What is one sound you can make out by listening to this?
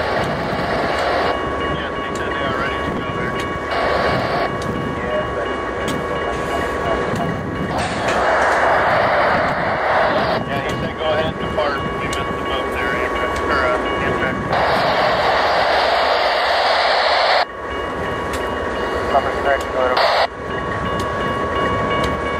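A heavy diesel locomotive rumbles slowly past close by.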